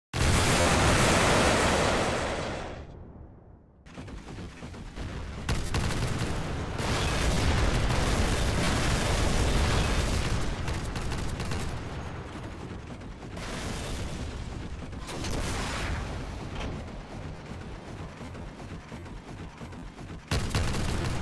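Heavy guns fire in rapid bursts with loud booms.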